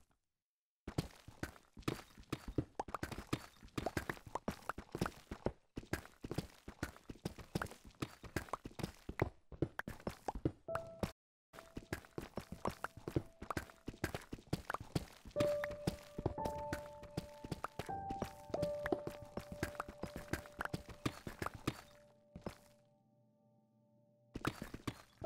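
A pickaxe rapidly chips and breaks stone with quick crunching knocks.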